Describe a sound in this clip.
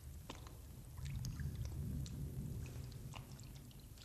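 Water rushes and splashes in an echoing cave.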